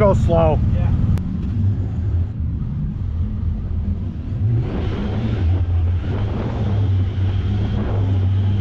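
A vehicle engine rumbles steadily up close.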